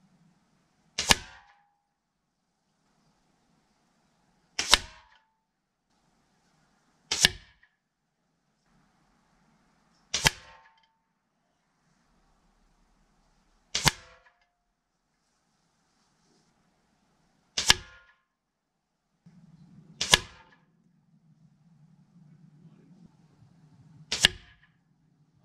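Bullets strike a hanging metal can with sharp cracks, one every few seconds.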